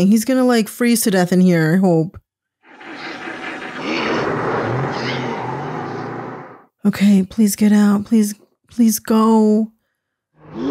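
A young woman speaks close to a microphone with animation.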